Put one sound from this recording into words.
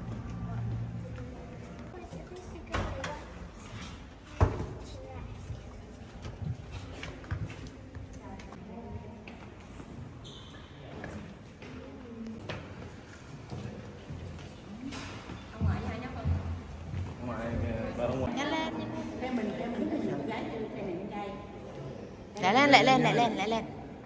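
Visitors chatter and walk in a large echoing hall.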